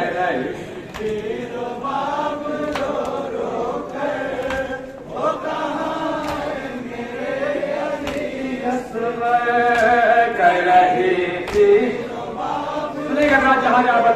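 A crowd strikes their chests in a slow, steady rhythm.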